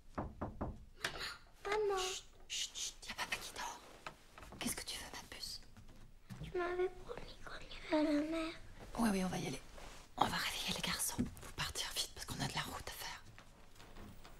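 A woman speaks urgently and close by.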